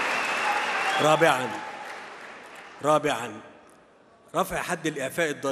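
A middle-aged man speaks calmly and formally through a microphone in a large echoing hall.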